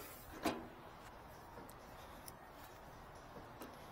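Metal fittings clink as a hose reel is handled.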